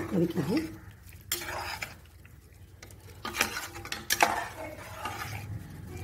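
A metal ladle stirs thick soup and scrapes against a metal pot.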